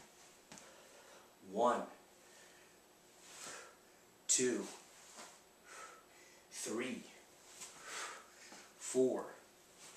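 Quick arm movements swish through the air.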